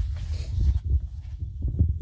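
Paper rustles as a sheet is flipped over.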